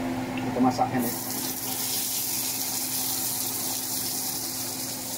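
Meat sizzles loudly on a hot griddle.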